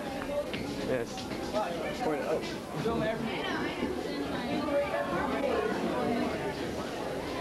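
Several people talk over one another nearby.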